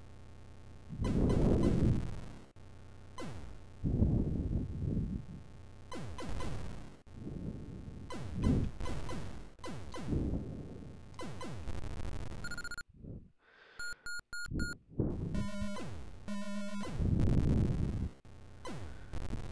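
Retro video game explosions rumble in repeated bursts.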